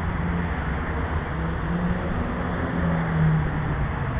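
A car drives by on a nearby road.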